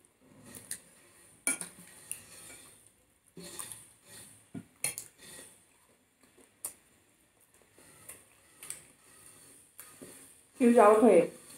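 Young women chew food close to a microphone.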